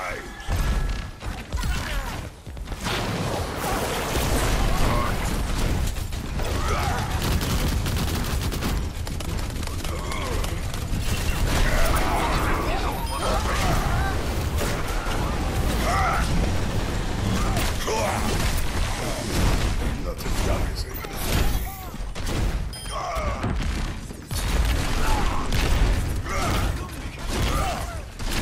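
A heavy hammer swings and strikes with loud metallic thuds.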